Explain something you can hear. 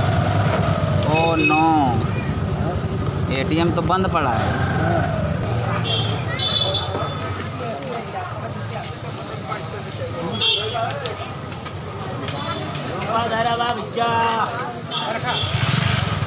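Men's voices chatter nearby in a busy street.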